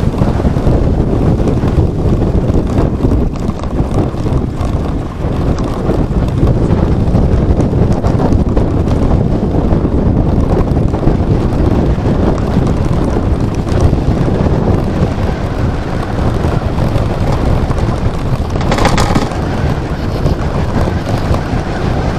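Wind rushes loudly and roughly past a moving rider.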